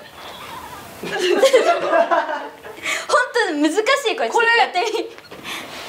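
A second young woman laughs loudly close by.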